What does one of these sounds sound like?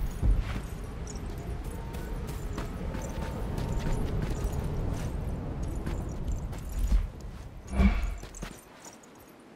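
Footsteps run across dirt and stone.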